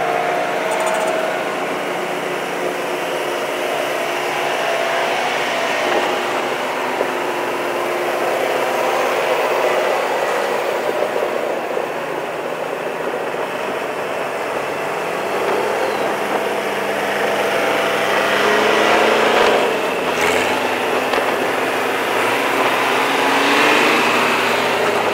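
Farm implements rattle behind the tractors.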